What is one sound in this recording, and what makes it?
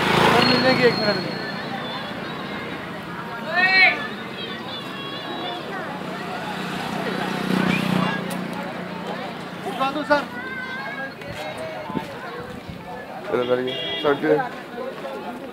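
A crowd of men and women chatter nearby outdoors.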